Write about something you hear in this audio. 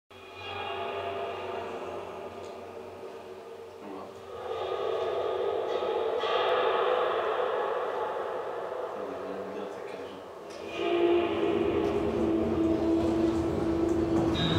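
A hanging metal spring rings and drones with layered humming tones.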